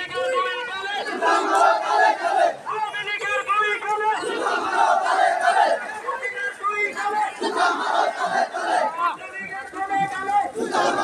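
A crowd of young men chants slogans loudly outdoors.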